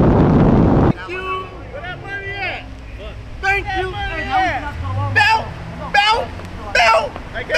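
Men shout and cheer outdoors.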